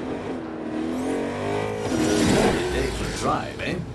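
A car engine roars as a vehicle arrives.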